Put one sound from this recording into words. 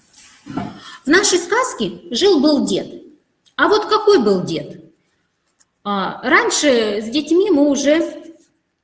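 A child speaks through an online call.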